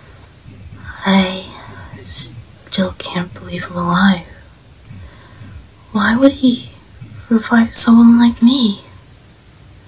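A young man speaks softly and shakily, close up.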